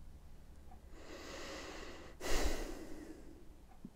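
An older man sighs heavily.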